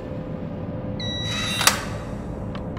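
Electronic keypad buttons beep.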